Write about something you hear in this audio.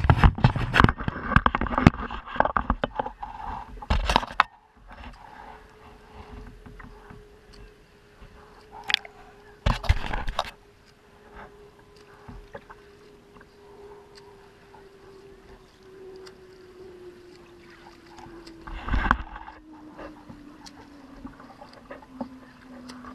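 Water sloshes and splashes close by, heard from right at the surface.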